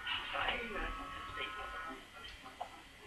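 A man speaks through a radio.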